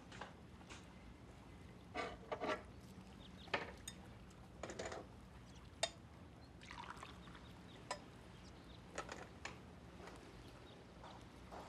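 Dishes and utensils clink and knock on a counter.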